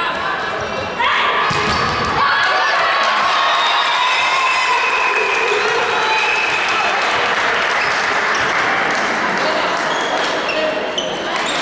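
Young women shout and cheer loudly in an echoing hall.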